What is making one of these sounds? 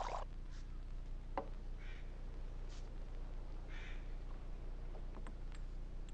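Glass bottles clink together.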